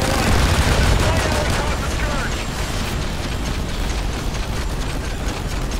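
Pistol shots crack rapidly.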